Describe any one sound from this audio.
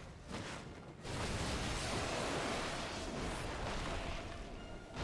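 Electric magic crackles and bursts loudly.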